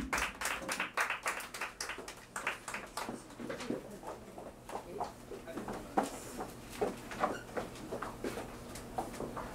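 A small jazz band plays.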